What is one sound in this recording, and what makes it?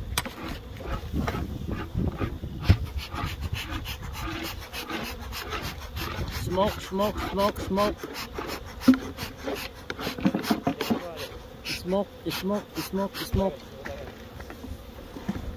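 Wooden hive frames knock and scrape.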